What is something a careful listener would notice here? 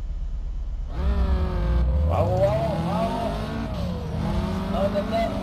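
Car engines roar and rev up as a race starts.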